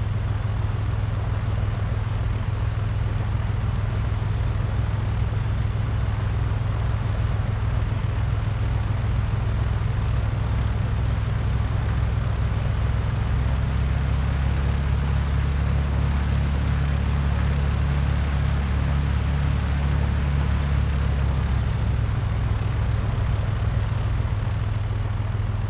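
A small propeller plane's engine hums steadily as it taxis.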